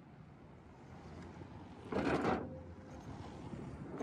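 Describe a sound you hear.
An electric scooter rolls past close by.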